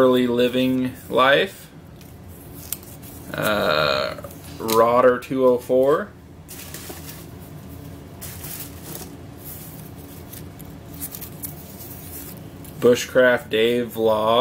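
Paper strips rustle softly as they are handled.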